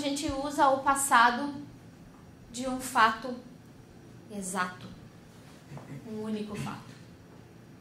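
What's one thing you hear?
A woman speaks with animation in an echoing room, heard from across the room.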